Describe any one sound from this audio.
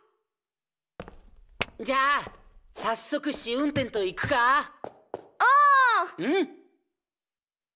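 A young boy asks a question with animation.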